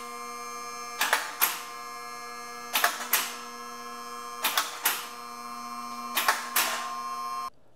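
Metal safety latches on a car lift clank at regular intervals.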